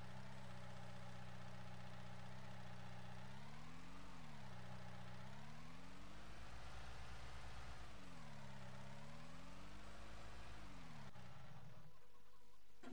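A loader's diesel engine hums and revs up and down.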